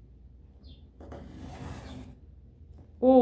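A plastic ruler slides across paper.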